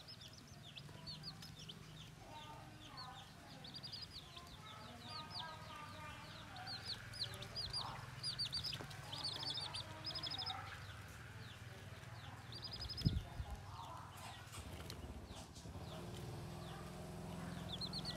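Baby chicks cheep and peep rapidly, close by.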